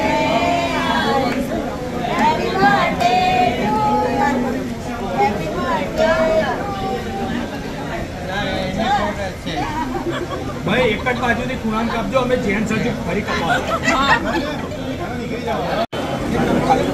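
A group of women sing together cheerfully nearby.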